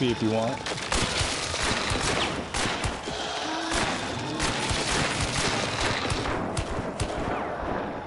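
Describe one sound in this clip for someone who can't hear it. Fire bursts and roars loudly.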